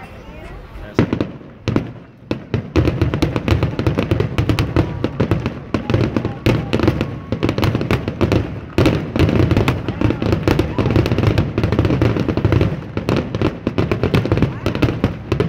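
Fireworks bang and crackle outdoors in rapid bursts.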